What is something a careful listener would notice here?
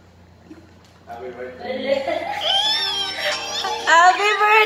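A young woman laughs and squeals with delight.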